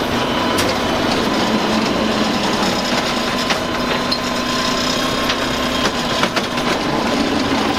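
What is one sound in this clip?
A hydraulic arm whines as it lifts a wheeled bin.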